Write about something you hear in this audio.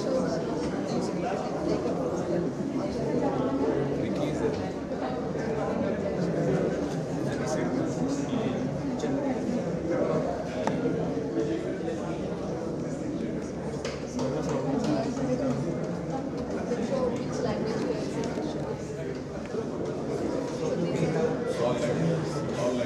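A crowd murmurs all around in a large room.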